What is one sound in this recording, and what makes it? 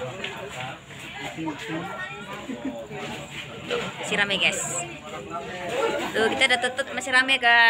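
Men and women chatter and call out nearby.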